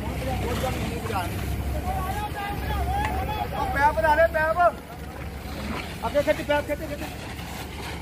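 Men shout loudly nearby outdoors.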